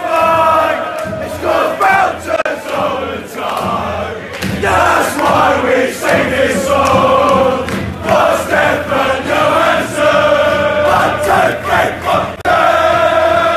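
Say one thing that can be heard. Hands clap in rhythm among a crowd.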